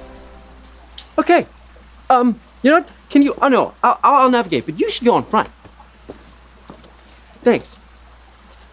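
A young man speaks excitedly up close.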